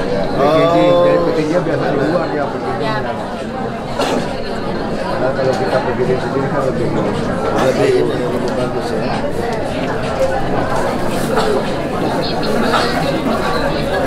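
A man talks up close.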